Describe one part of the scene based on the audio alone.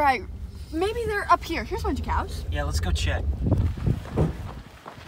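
A car engine hums from inside.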